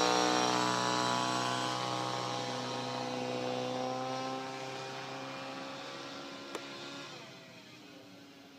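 A jet roars overhead, its pitch slowly falling as it climbs away.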